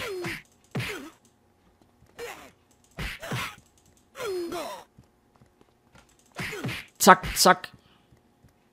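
Punches and kicks land with sharp thuds in quick bursts.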